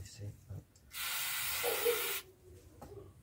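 An aerosol can sprays with a steady hiss.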